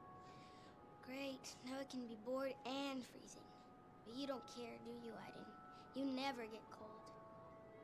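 A young girl talks to herself in a sulky, complaining voice.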